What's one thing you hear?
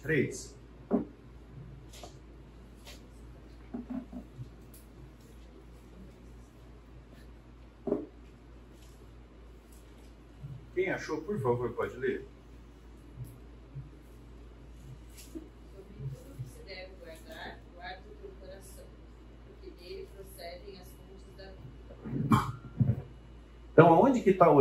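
A middle-aged man speaks calmly in a room with a slight echo.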